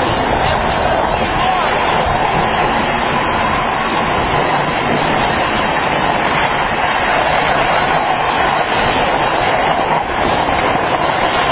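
Wind roars loudly against a microphone.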